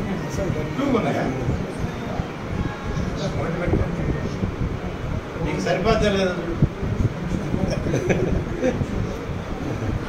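Several men talk at once.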